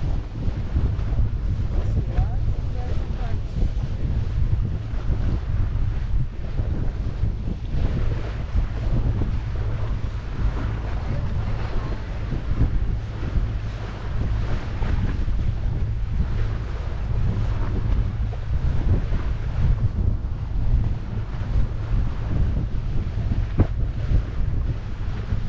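Wind buffets loudly outdoors as a boat moves over open water.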